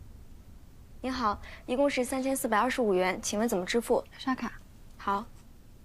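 A young woman speaks politely and calmly nearby.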